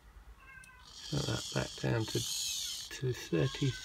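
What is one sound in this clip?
A small electric motor whirs briefly as a mechanism moves.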